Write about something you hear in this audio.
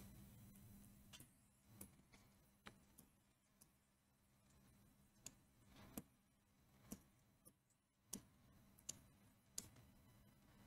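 A marker taps and squeaks as it writes.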